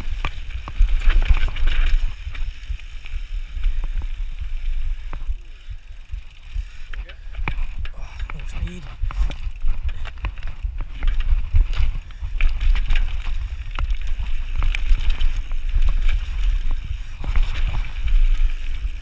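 Bicycle tyres crunch and rattle over loose stones.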